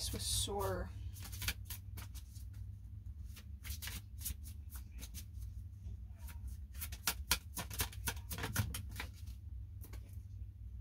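Playing cards riffle and flick as they are shuffled by hand.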